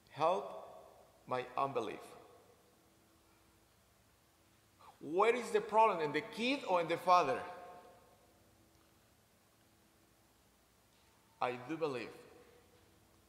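A man speaks with passion into a microphone, in bursts, in a large echoing hall.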